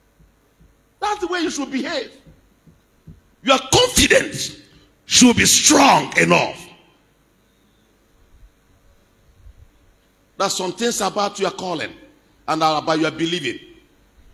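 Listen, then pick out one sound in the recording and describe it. A man speaks loudly into a microphone, heard through loudspeakers in a large echoing hall.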